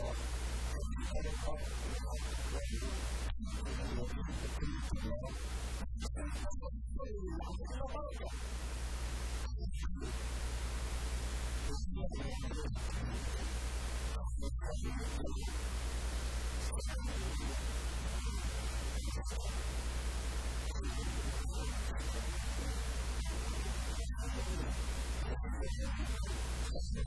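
A middle-aged man speaks with animation through a microphone and loudspeakers.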